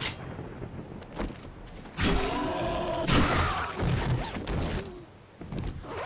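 A zombie growls and snarls close by.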